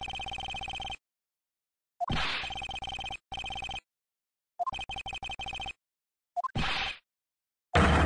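Short electronic beeps tick rapidly, on and off, in quick bursts.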